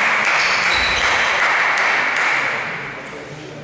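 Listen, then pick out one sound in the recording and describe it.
Spectators clap and applaud in a large echoing hall.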